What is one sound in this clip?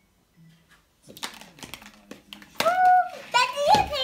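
Plastic toys clatter against a plastic bowl.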